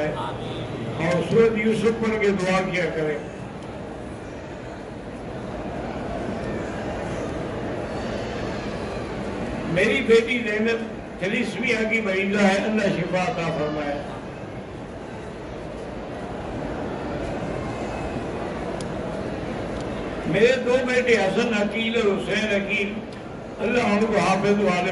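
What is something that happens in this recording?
An elderly man speaks slowly and solemnly into a microphone, heard through a loudspeaker with some echo.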